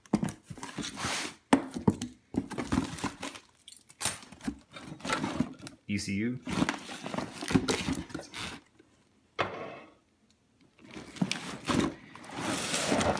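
Wires and cardboard rustle and scrape as a hand rummages in a box.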